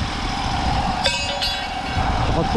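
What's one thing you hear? A metal grate clanks as it is lifted off the ground.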